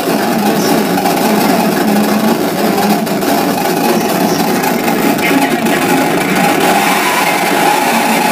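Loud, harsh electronic noise music plays through speakers.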